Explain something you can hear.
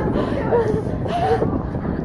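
A young woman shouts loudly.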